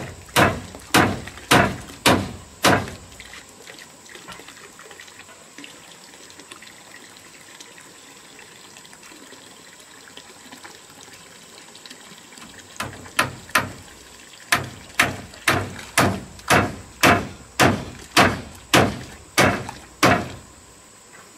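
Hammer blows knock sharply on wood in quick bursts.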